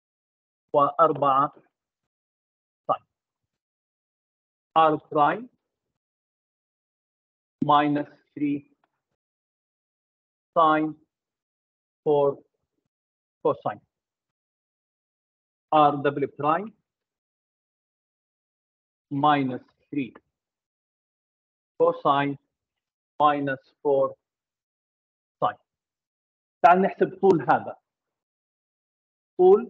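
An older man speaks calmly and slowly through a microphone, with long pauses.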